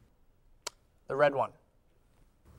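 A young man speaks briefly and calmly.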